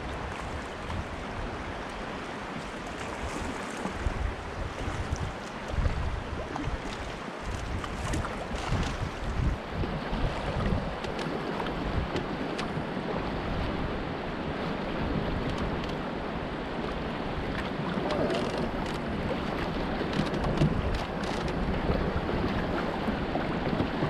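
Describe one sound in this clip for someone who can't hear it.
A paddle splashes and dips into the water.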